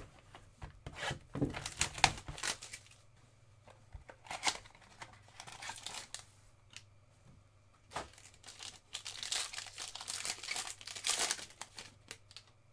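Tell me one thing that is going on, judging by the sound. Foil wrappers crinkle and rustle as hands tear open card packs.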